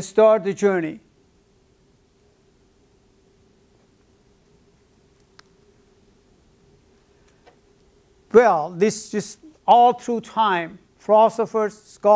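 An elderly man speaks calmly, lecturing with pauses.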